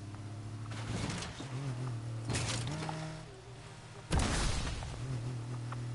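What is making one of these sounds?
Explosions boom and crack loudly.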